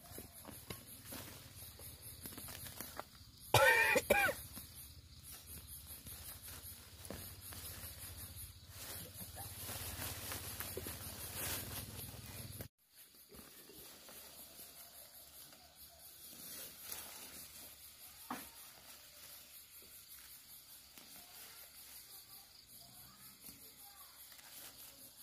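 Leafy plants rustle as they are pulled up from dry soil.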